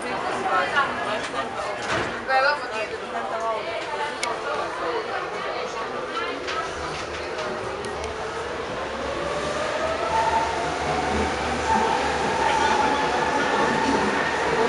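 A train rumbles along.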